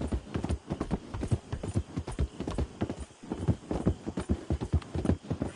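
Horse hooves clop quickly on wooden railway sleepers.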